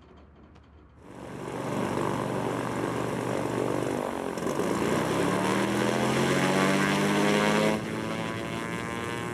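A small plane's propeller engine roars loudly and rises in pitch.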